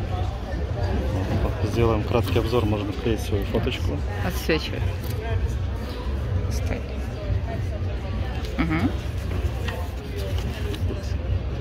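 Paper pages rustle as a booklet is handled and leafed through.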